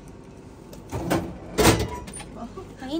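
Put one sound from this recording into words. A can drops with a heavy clunk into a vending machine's tray.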